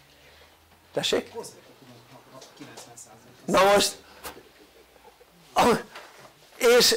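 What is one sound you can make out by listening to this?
An elderly man speaks calmly and with emphasis.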